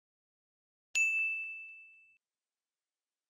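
A bell chimes once and rings out.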